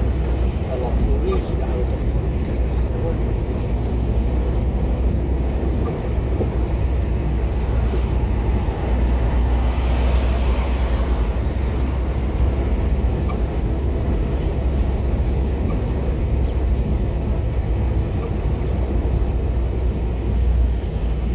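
A car drives along a road with a steady low rumble of engine and tyres.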